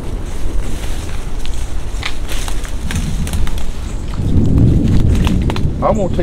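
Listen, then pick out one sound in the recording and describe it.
Leaves and branches rustle as a man pushes through leafy undergrowth.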